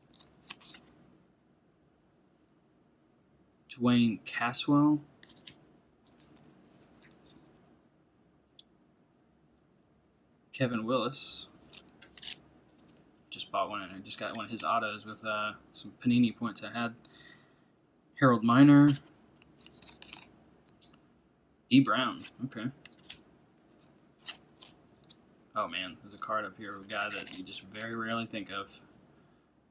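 Stiff trading cards slide and rustle as a hand flips through them.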